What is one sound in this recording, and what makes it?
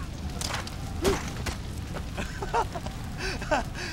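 A body thuds onto the ground.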